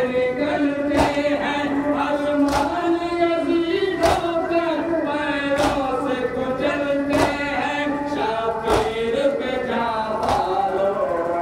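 Men beat their chests in a slow, steady rhythm.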